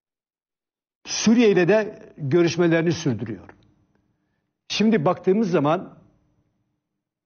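An elderly man speaks calmly and firmly through a microphone, in short bursts.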